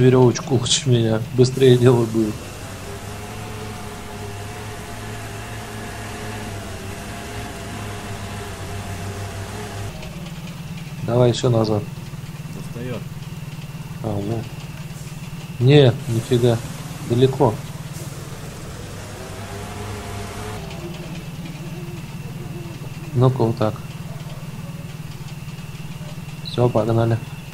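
A heavy truck engine rumbles and labours steadily.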